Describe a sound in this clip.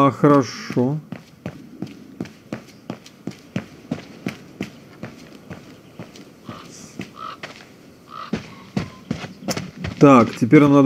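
Footsteps tap steadily on stone.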